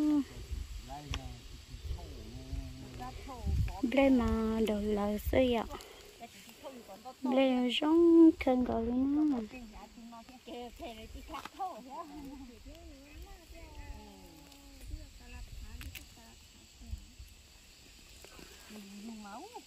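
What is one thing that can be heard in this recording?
A woman talks nearby outdoors.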